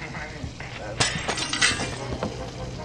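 Window glass shatters with a sharp crash.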